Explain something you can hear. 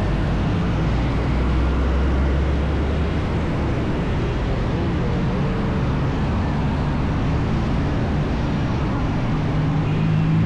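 A truck engine roars as it passes.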